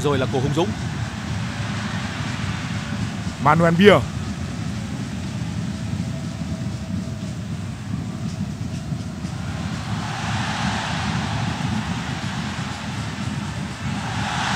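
A large stadium crowd roars steadily and swells louder toward the end.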